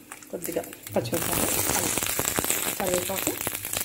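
Vegetables sizzle loudly in hot oil.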